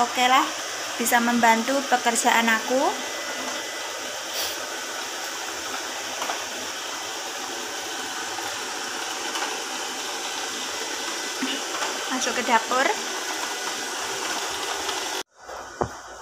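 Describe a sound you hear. A robot vacuum cleaner whirs steadily as it moves across the floor.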